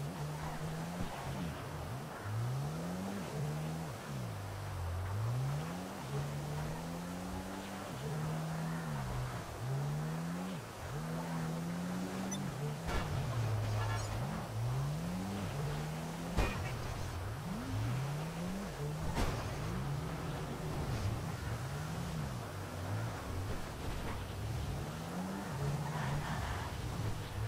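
A car engine hums and revs up and down as it drives.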